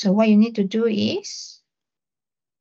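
A young man speaks briefly through an online call.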